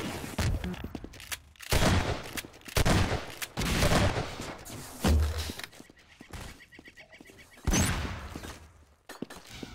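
Guns fire in loud, sharp bursts.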